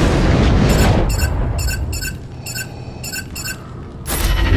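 Blasters fire in rapid bursts.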